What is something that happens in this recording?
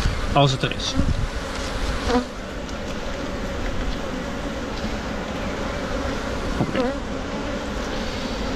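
Many bees buzz steadily close by.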